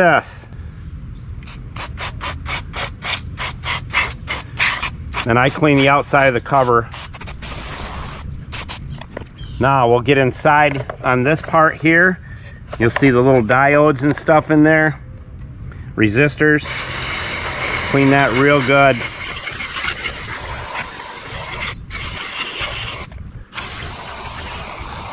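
An aerosol can hisses as it sprays, first in short bursts and later in a long steady stream.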